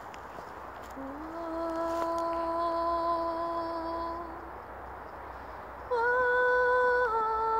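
An elderly woman sings long, held notes outdoors.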